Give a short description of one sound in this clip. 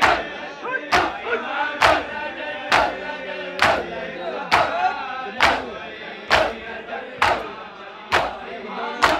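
A crowd of men beat their bare chests in a steady rhythm, with loud slaps.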